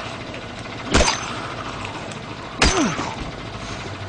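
A heavy blow strikes flesh with a wet thud.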